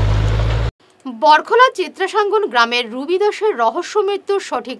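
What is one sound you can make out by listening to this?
A woman reads out the news clearly through a microphone.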